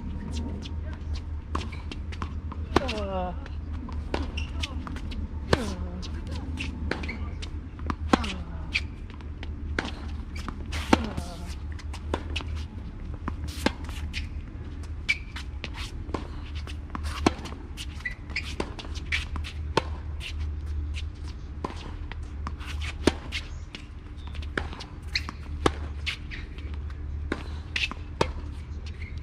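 Tennis balls are struck sharply with rackets, back and forth in a steady rally outdoors.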